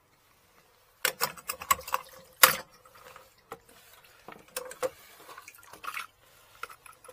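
Plastic parts clatter and knock as they are handled.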